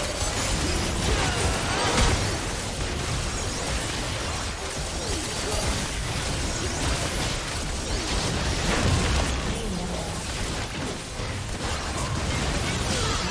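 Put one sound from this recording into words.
Magic spells burst and weapons clash in a hectic fight.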